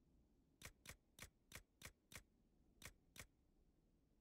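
Menu clicks tick quickly as items are scrolled.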